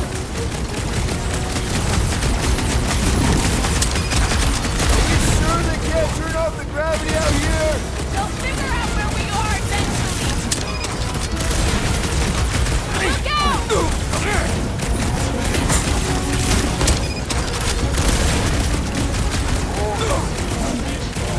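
Blows clash and thud rapidly in a fast fight.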